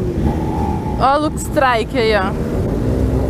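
Other motorcycles rev their engines nearby.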